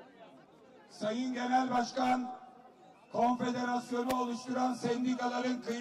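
A middle-aged man speaks forcefully into a microphone over loudspeakers outdoors.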